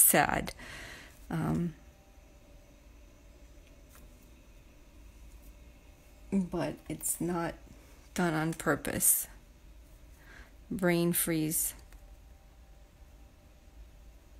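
A paintbrush strokes softly on paper.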